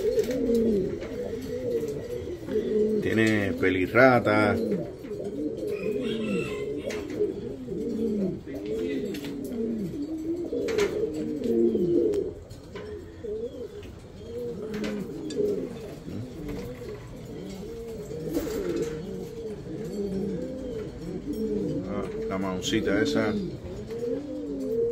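Many pigeons coo in low, rolling calls throughout.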